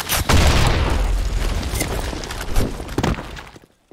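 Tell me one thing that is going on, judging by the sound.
A rifle fires sharp, echoing shots.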